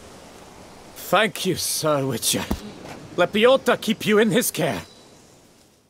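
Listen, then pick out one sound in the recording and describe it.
A man speaks gratefully and warmly, close by.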